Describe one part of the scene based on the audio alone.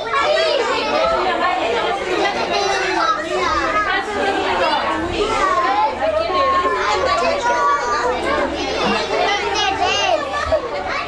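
A crowd of young children chatter and call out loudly in a room.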